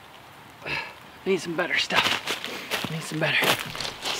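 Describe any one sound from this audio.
Dry leaves crunch underfoot as a man walks.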